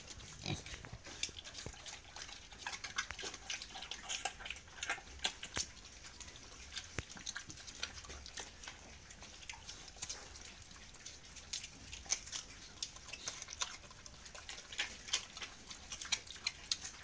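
Pigs chomp and slurp wetly on watermelon, close by.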